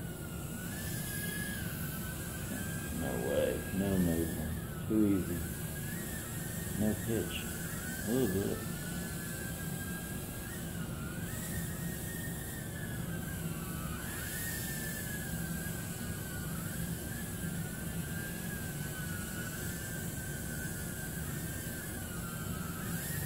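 A television plays steadily.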